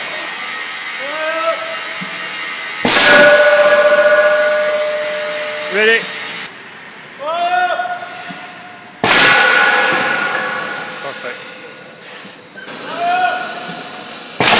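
A hydraulic machine whines and squeals as it moves.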